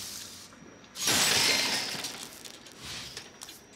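A loud whooshing upgrade sound swells and fades.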